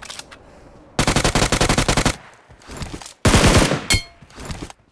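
Automatic gunfire rattles in fast bursts.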